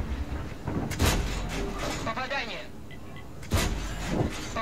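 A tank gun fires with a loud boom.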